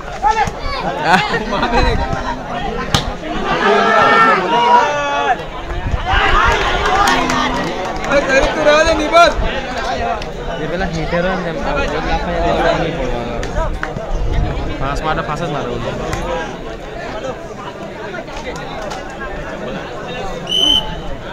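Young men shout to one another nearby.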